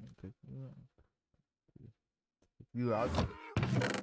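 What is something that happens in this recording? A wooden chest creaks shut.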